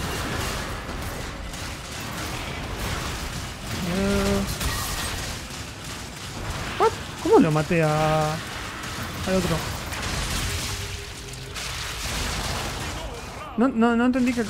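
Fantasy battle effects whoosh, zap and crackle in quick bursts.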